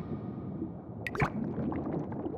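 A short game chime sounds as a menu pops open.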